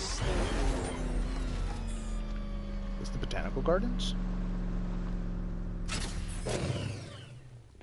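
A car engine revs loudly and then winds down.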